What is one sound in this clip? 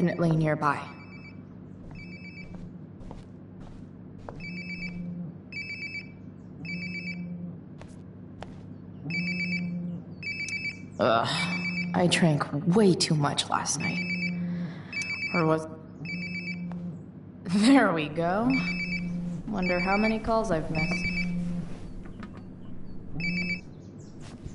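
A phone buzzes in short repeated bursts.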